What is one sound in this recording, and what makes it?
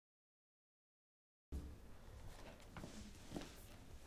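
A book closes softly.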